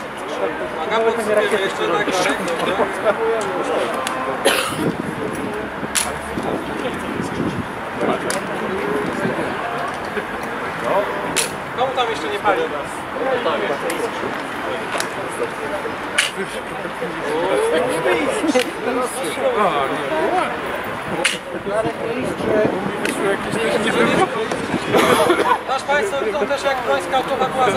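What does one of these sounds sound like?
A crowd of men and women talks and murmurs close by.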